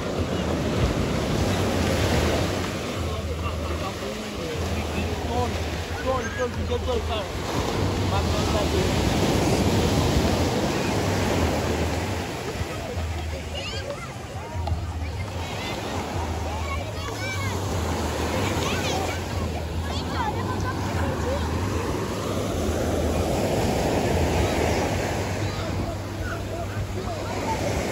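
A crowd of beachgoers chatters in the distance.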